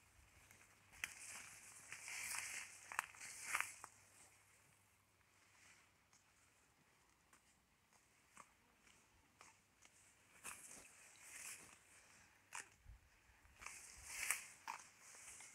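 Tall grass rustles and swishes nearby.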